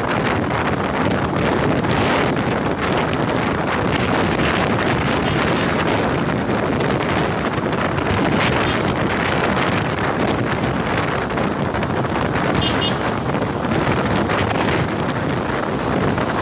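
Motorbike engines hum nearby.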